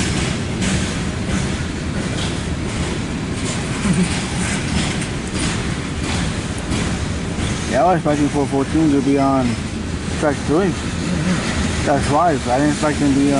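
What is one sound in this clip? A freight train rumbles and clatters past steadily.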